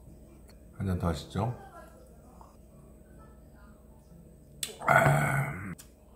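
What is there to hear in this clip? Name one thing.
A glass is set down on a table with a soft knock.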